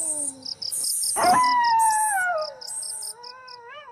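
A young woman screams in terror.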